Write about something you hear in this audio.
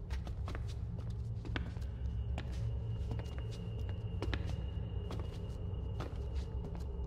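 Footsteps tap on a stone floor in a large echoing hall.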